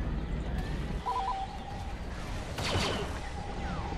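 Laser blasters fire in rapid shots.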